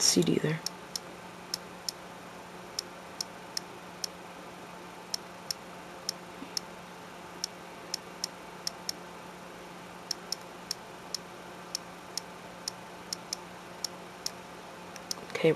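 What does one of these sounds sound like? A touchscreen keyboard gives off short, sharp clicks as keys are tapped.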